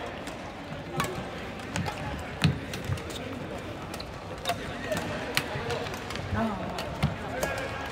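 Shuttlecocks are struck with sharp pops of rackets, echoing around a large hall.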